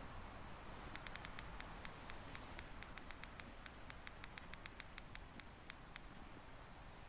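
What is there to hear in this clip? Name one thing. A handheld electronic detector crackles with rapid clicks.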